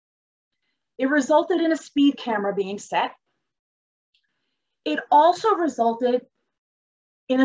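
A middle-aged woman speaks calmly into a close microphone, heard as though through an online call.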